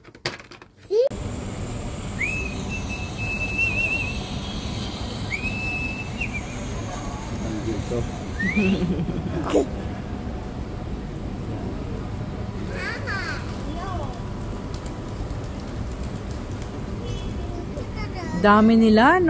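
Pigeons coo and shuffle outdoors.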